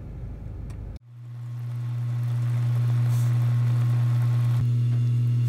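Meat and onions sizzle and bubble in a pan.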